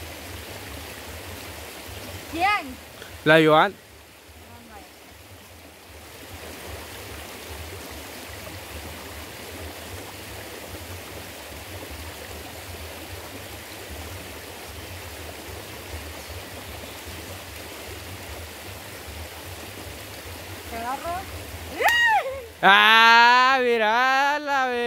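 A shallow stream rushes steadily over stones outdoors.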